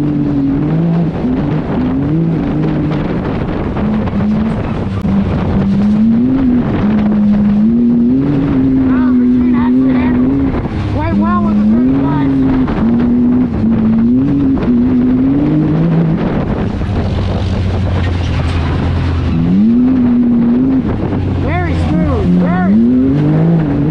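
Tyres rumble and bounce over a rough dirt trail.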